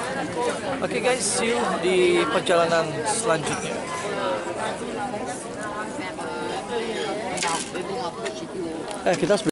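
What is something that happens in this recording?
A young man talks close to the microphone.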